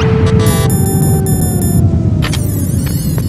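A game menu beeps with short electronic tones.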